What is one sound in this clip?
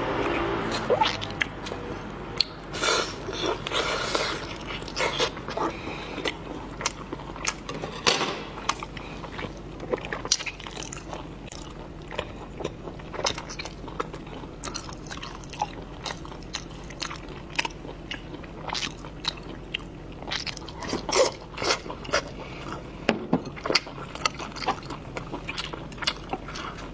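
A woman chews with wet smacking sounds close by.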